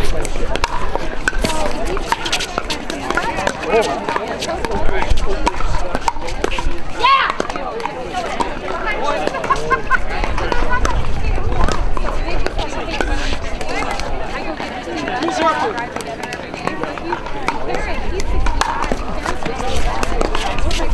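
Several people talk in the background outdoors.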